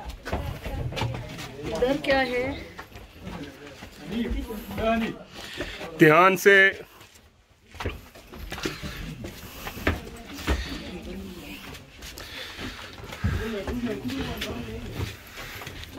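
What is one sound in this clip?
Footsteps scuff and tap on stone steps.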